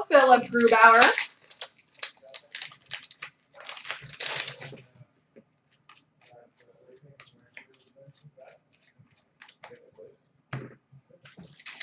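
Playing cards tap and shuffle softly in hands.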